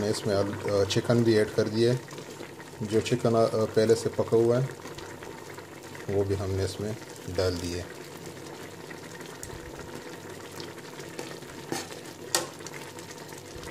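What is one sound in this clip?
A spoon scrapes and stirs through thick rice in a metal pot.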